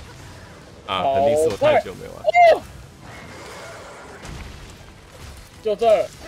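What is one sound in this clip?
A sword strikes with sharp metallic impacts.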